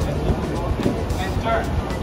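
Heeled shoes click on a hard floor as people walk.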